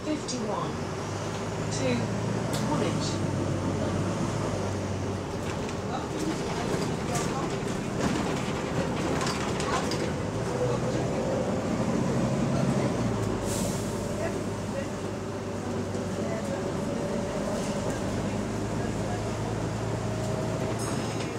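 Loose fittings rattle and clatter inside a moving bus.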